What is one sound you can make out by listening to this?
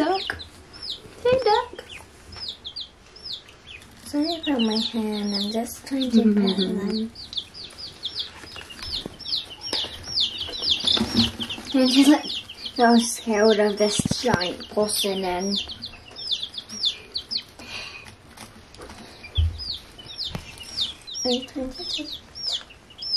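Many chicks peep loudly and rapidly, close by.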